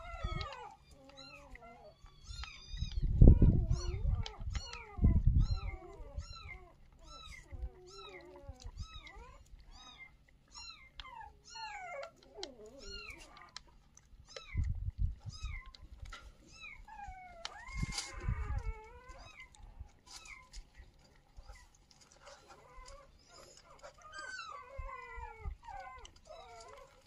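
Puppies crunch dry kibble from plastic bowls.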